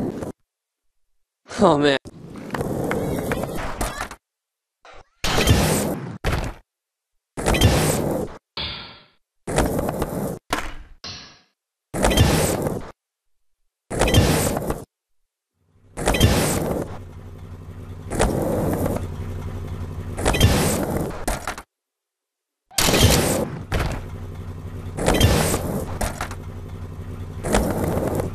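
Skateboard wheels roll and clatter over concrete.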